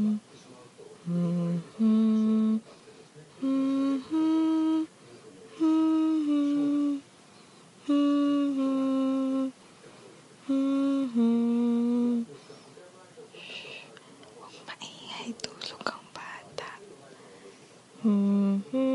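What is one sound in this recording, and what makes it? A dog howls in long, wavering notes close by.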